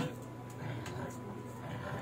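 A bicycle brake lever clicks as it is pulled.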